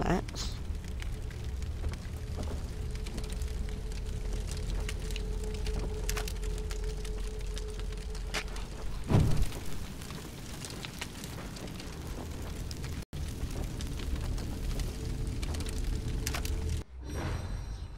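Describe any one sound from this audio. A low, steady rumble drones in the background.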